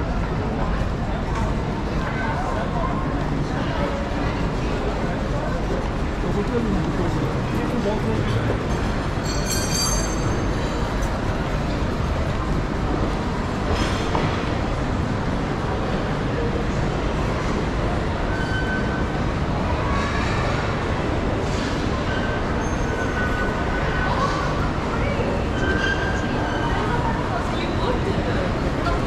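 Footsteps tap on a hard floor as people walk past.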